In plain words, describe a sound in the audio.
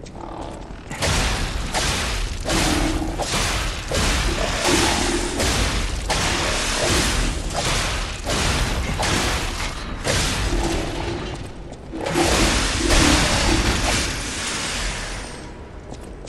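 A heavy machine clanks and whirs.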